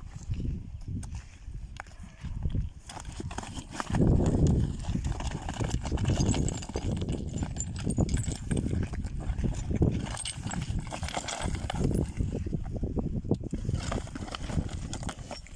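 Hooves scuff and thud on dry dirt.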